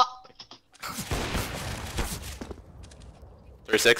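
A scoped rifle fires a single loud shot.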